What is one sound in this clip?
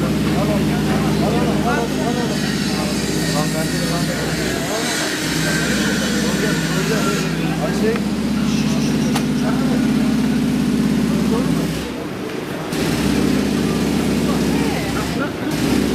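Men chatter excitedly close by.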